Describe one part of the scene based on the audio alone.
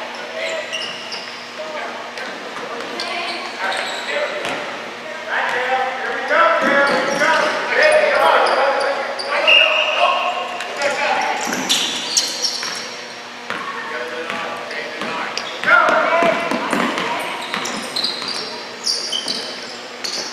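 Sneakers squeak on a gym floor, echoing in a large hall.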